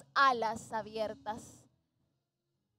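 A young woman sings a short, bright phrase close by.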